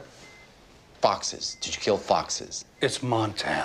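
A middle-aged man speaks sharply, close by.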